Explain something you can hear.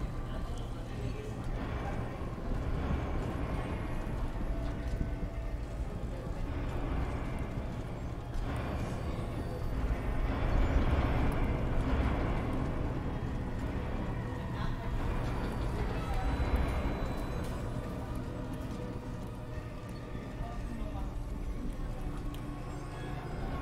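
Heavy gears turn with a low, steady mechanical rumble.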